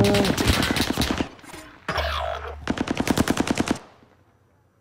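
A machine gun fires rapid bursts at close range.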